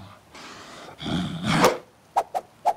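A cartoon crocodile growls loudly with its mouth open.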